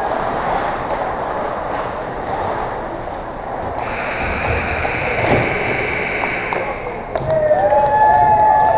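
Skates scrape on ice in a large echoing rink.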